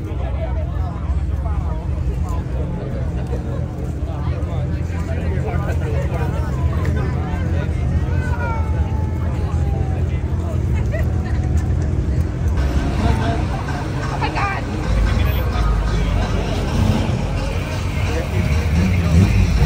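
Car engines rumble and rev close by.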